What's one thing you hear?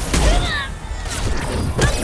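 A biotic blast whooshes and bursts.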